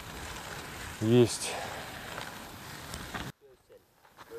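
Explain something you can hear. Bicycle tyres crunch over a gravel road.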